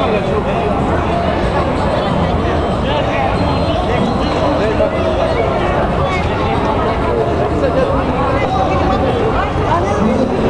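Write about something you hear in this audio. A crowd of men and women chatters outdoors, close by.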